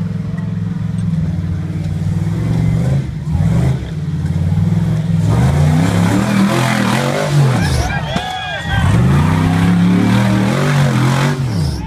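Large tyres grind and crunch over rocks and dirt.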